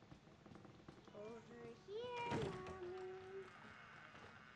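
A wooden door creaks slowly.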